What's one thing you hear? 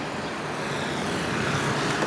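A motorcycle drives by.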